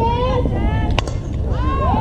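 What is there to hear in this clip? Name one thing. A bat cracks sharply against a ball.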